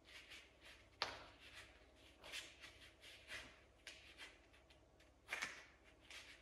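A bare foot thumps onto a hard floor.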